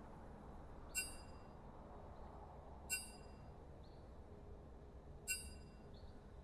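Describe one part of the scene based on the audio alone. A short bright chime rings out three times.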